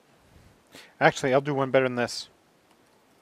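A man speaks briefly and calmly into a nearby microphone.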